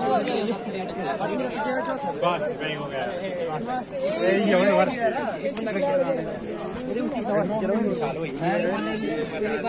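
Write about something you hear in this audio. A crowd of young men shouts and cheers excitedly close by outdoors.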